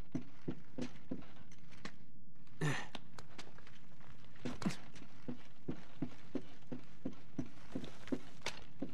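Footsteps thud quickly on wooden planks.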